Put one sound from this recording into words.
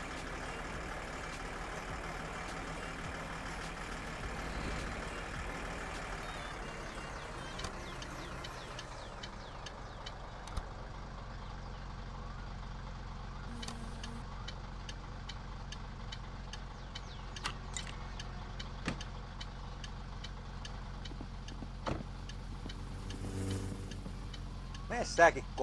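A car engine hums steadily, then winds down as the car slows to a stop.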